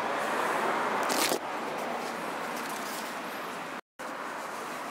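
Leaves rustle in the wind outdoors.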